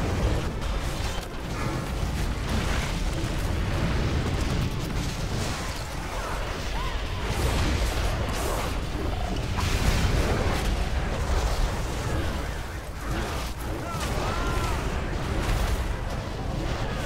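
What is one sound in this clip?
Spell blasts and combat effects crackle and boom continuously.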